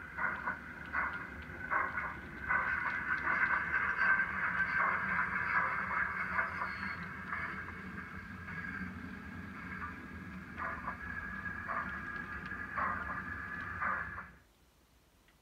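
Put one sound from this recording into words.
A model train rumbles and clicks along the track as it passes.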